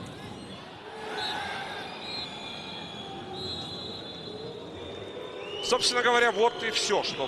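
A big crowd cheers loudly as a team attacks.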